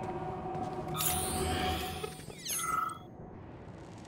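A large robot whirs and clanks nearby.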